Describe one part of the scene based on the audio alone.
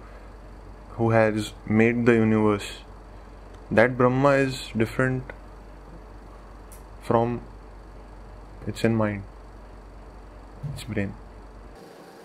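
A young man speaks calmly, with pauses between phrases.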